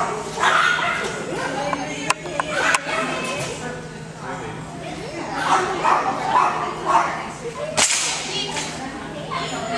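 A woman talks to a dog with animation in a large echoing hall.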